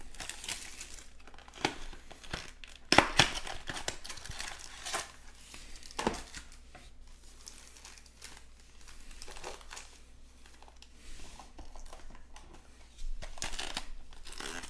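Foil card packs rustle and crinkle in hands.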